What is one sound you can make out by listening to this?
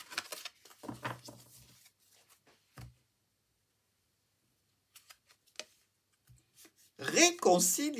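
Cards shuffle and tap softly against each other.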